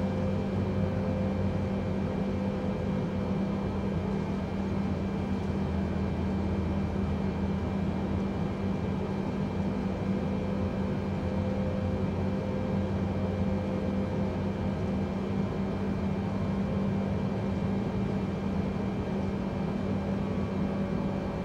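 The jet engines of a twin-engine jetliner hum at idle as it taxis, heard from inside the cockpit.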